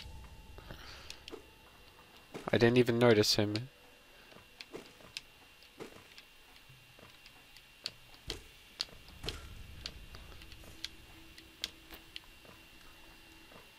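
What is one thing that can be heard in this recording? Small quick footsteps tap on hard ground.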